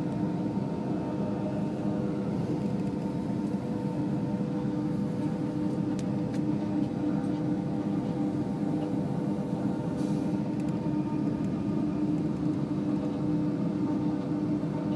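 A train rumbles steadily over a steel bridge, its wheels drumming on the rails.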